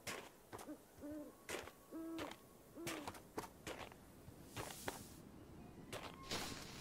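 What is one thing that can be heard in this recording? Footsteps crunch on snow at a steady walking pace.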